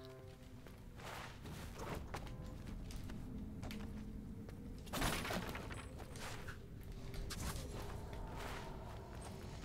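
Sword slashes whoosh and clang in quick bursts.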